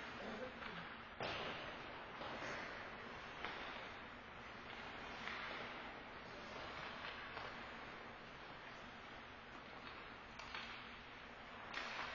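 Ice skates scrape and carve across the ice in a large echoing rink.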